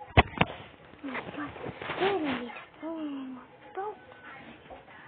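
A young boy talks quietly, close to a phone microphone.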